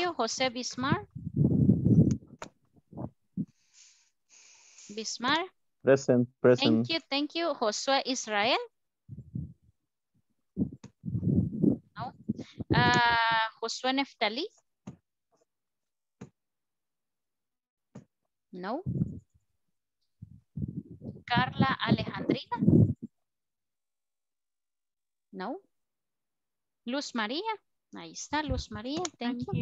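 A woman speaks through an online call, teaching with animation.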